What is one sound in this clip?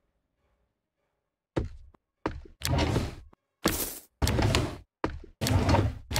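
A wooden drawer slides open and shut.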